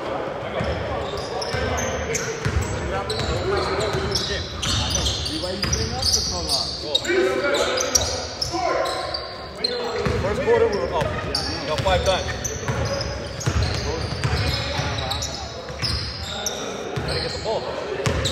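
Basketball shoes squeak sharply on a gym floor.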